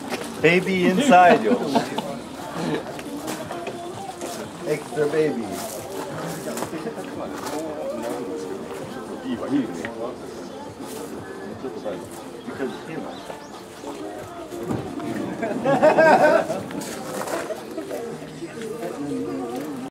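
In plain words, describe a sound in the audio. Several young men talk and laugh nearby, outdoors.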